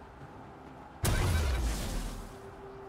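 A loud magical blast whooshes and booms, then fades.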